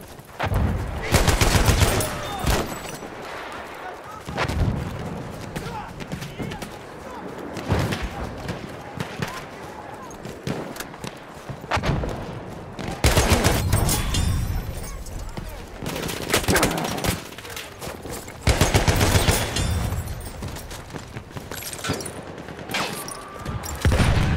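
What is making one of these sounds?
A submachine gun fires in rapid, loud bursts.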